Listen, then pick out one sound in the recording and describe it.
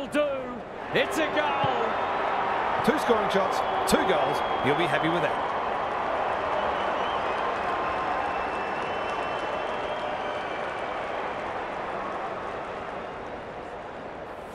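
A large stadium crowd cheers and roars.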